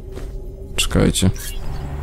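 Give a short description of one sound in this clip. A sword swishes through the air in a quick slash.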